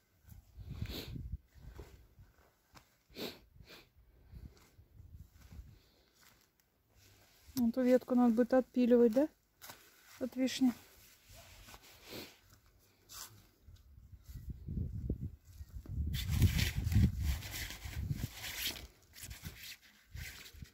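A metal rake scrapes and drags through loose soil.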